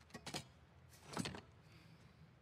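A chair scrapes across a hard floor.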